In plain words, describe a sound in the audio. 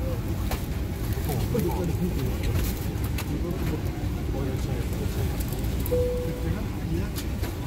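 A tissue rustles as a hand wipes a surface.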